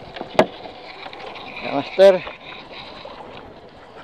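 A hand rustles a coiled fishing line in a boat.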